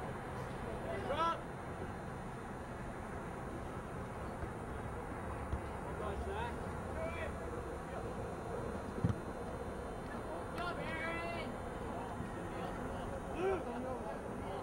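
Men shout loudly outdoors, some way off.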